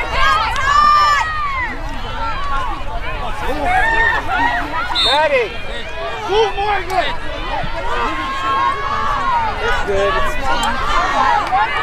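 Teenage girls shout and call out to each other across an open field.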